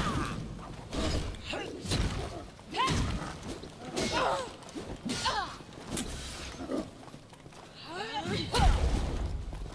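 Blades clash with sharp metallic hits.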